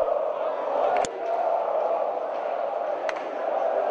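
A football is kicked with a sharp thud.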